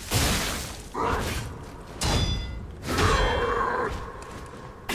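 A creature growls and roars.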